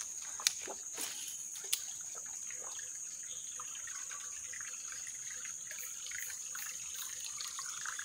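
A fishing reel is wound in.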